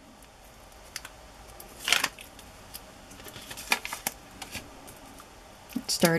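Paper rustles and crinkles as hands fold and press it.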